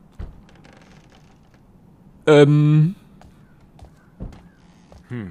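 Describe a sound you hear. Footsteps thud on stone steps.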